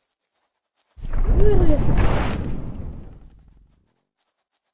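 Spikes burst out of the ground with a deep, rumbling crash that slowly fades.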